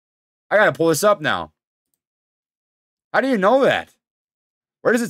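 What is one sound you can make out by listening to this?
A young man speaks with animation, close to a microphone.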